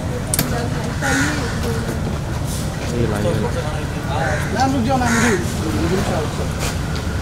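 A young woman speaks nearby outdoors.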